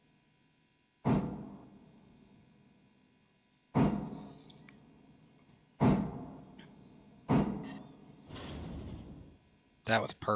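A steam locomotive lets off sharp bursts of hissing steam.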